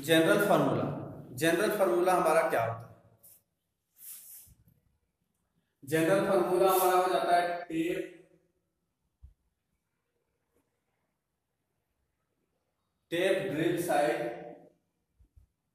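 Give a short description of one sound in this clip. A young man speaks calmly and clearly, close by, in short bursts with pauses.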